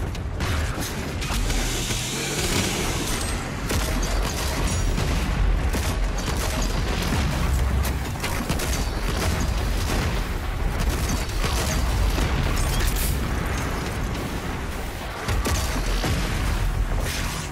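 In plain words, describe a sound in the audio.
Guns fire in rapid bursts with heavy booms.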